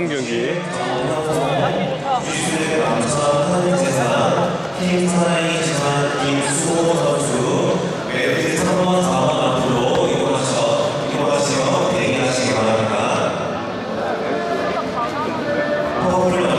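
A crowd of young men and women chatters and calls out in a large echoing hall.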